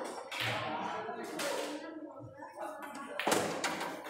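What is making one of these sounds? A cue strikes a ball with a sharp knock.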